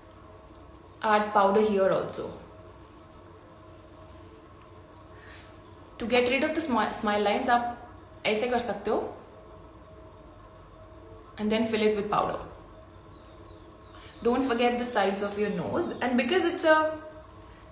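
A young woman talks calmly and closely, in short bursts with pauses.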